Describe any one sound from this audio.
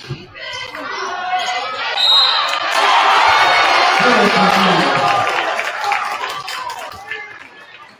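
A crowd in an echoing gym cheers, swelling loudly and then fading.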